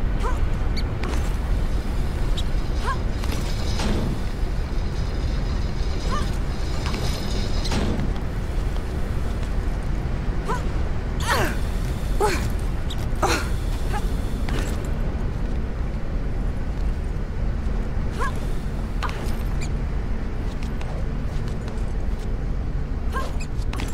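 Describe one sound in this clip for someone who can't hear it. Hands thud and scrape as they grab onto ledges.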